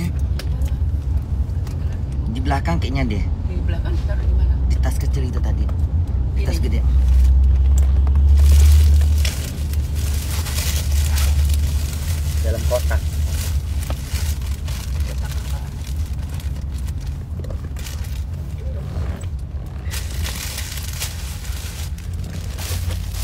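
Cloth rustles close by.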